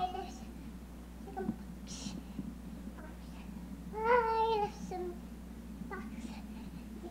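A small child sings and calls out in a high voice close by.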